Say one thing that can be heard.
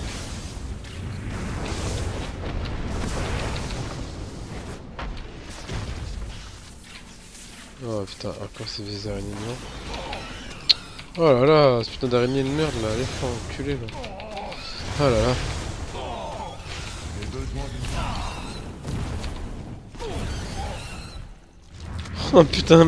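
Magic spells crackle and whoosh in a battle.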